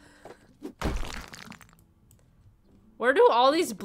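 Bricks and rubble clatter down.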